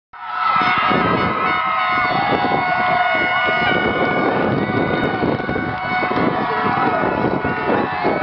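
Children cheer and shout excitedly outdoors.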